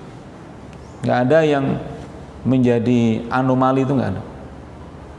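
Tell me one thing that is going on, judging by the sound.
A middle-aged man chants loudly into a microphone, his voice echoing.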